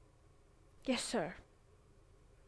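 A young woman speaks briefly.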